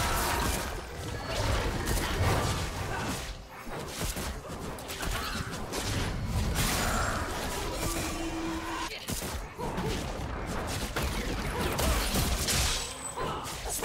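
Magic spells whoosh and crackle during a fight in a game.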